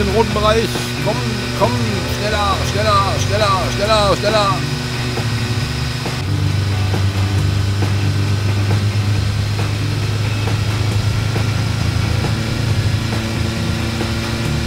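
Kart engines hum and whine steadily.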